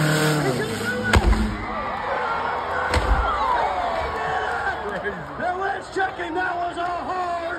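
A crowd of men and women cheers and shouts nearby.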